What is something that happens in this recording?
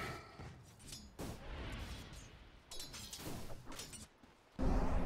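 Fantasy battle sound effects of spells bursting and weapons striking come in quick, crackling bursts.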